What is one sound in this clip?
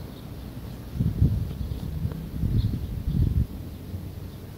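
Footsteps thud softly on grass close by.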